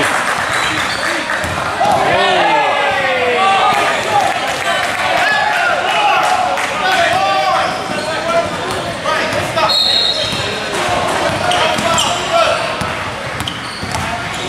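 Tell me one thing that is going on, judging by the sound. A basketball bounces on a court floor.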